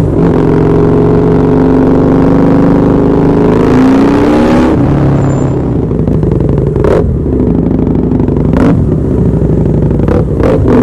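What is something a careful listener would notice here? A motorcycle engine roars loudly close by, revving up and then dropping to a lower rumble.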